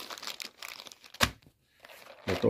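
A plastic box clacks onto a hard surface.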